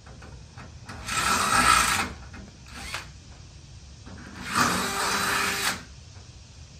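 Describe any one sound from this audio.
A power wrench whirs in loud bursts.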